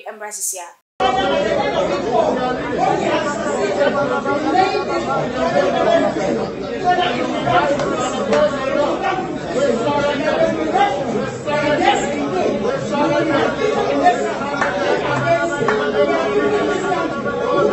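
Many men and women talk over each other loudly in a crowded room.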